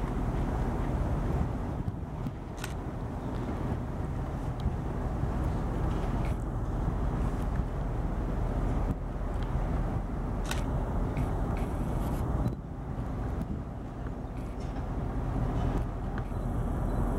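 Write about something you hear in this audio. Steel wheels click and squeal on the rails.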